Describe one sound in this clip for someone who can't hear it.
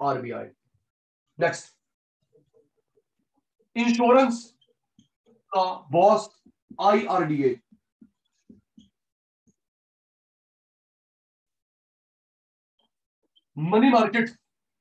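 A man speaks calmly and clearly through a close microphone, in short phrases with pauses.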